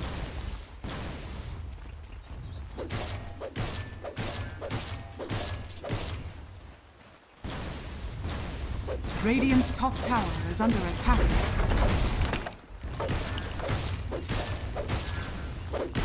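Weapons clash and magic spells burst in a fast fantasy battle.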